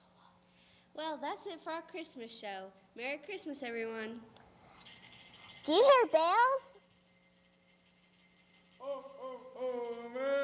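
A young girl speaks into a microphone with animation.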